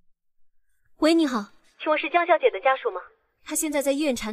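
A young man speaks into a phone.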